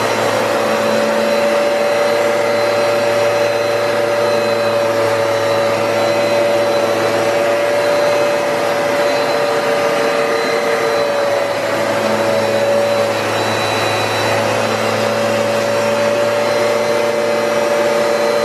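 A vacuum cleaner's brush rolls back and forth over carpet.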